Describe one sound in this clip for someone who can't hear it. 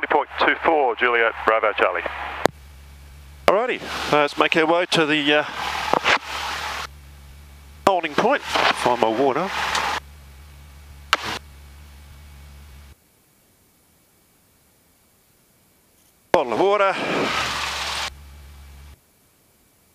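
A small plane's engine hums steadily, heard through the intercom.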